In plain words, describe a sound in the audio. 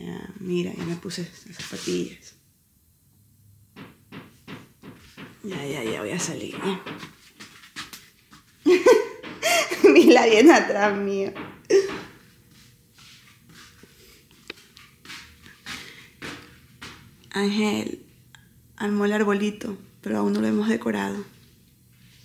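A woman speaks close by, casually.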